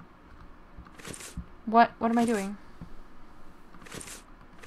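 Paper pages rustle briefly as they turn.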